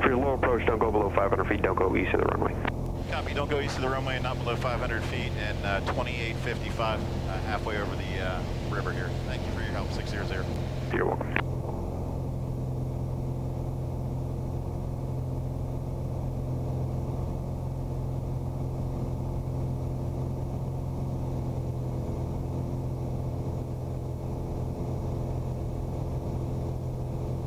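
A small plane's engine drones steadily and loudly.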